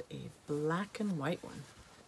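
Paper rustles as it is waved about.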